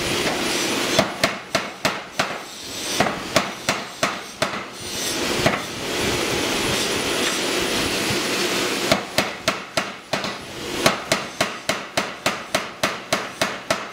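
A power hammer pounds hot metal in rapid, heavy blows.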